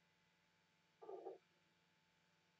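Sliding train doors close.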